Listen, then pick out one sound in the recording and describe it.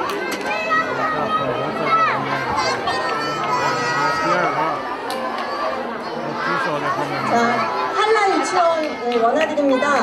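A crowd of children and adults cheers and shouts loudly in a large echoing hall.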